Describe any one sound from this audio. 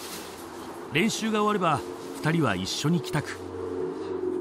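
A man talks at a doorway.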